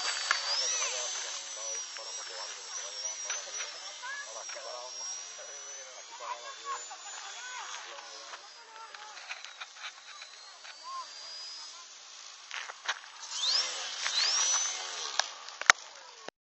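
A model airplane's small engine whines overhead, rising and falling in pitch.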